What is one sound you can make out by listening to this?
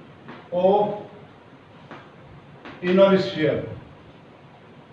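An elderly man speaks slowly and clearly, as if lecturing.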